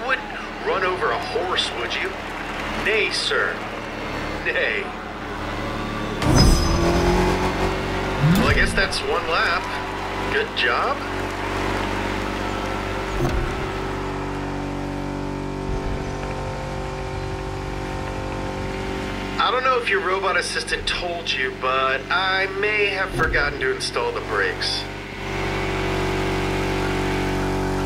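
A truck engine roars steadily as it races.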